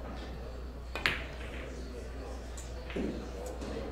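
Billiard balls clack together on the table.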